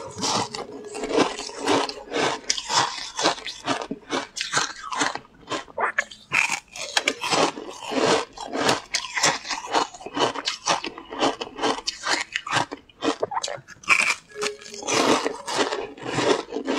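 A young woman chews crunchy food close to a microphone.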